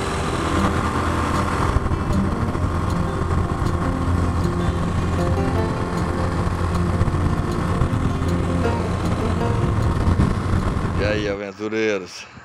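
Wind rushes loudly past while riding.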